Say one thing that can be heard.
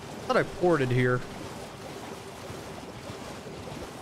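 A horse splashes through shallow water.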